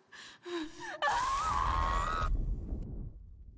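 A young woman screams in anguish.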